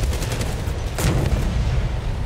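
A tank cannon fires with a sharp, loud boom.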